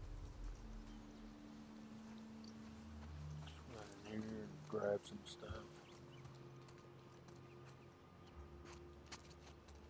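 Footsteps brush through tall grass and then tread on a hard floor.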